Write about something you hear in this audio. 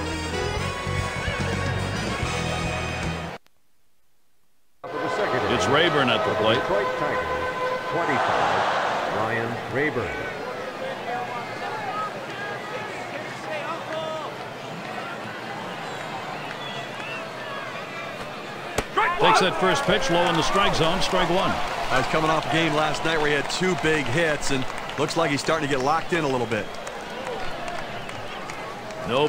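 A large crowd murmurs in a stadium.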